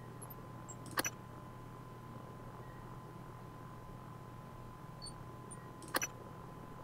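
A short, sharp menu click sounds.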